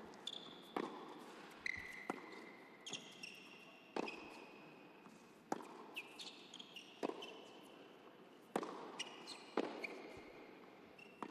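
Rubber shoes squeak sharply on the court.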